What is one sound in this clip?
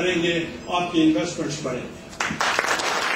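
A middle-aged man speaks forcefully into a microphone in an echoing hall.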